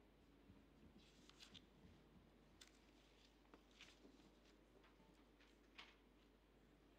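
Paper rustles close to a microphone.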